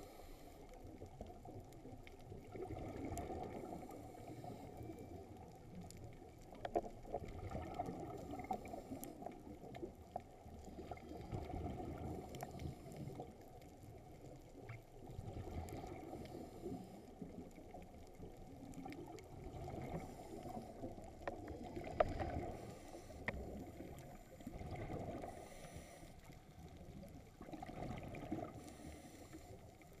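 Water surges and rumbles in low, muffled waves underwater.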